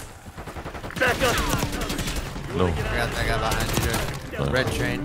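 Rapid gunshots fire in bursts.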